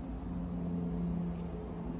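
A parrotlet flutters its wings.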